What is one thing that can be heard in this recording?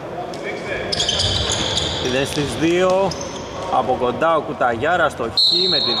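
Sneakers squeak sharply on the court floor.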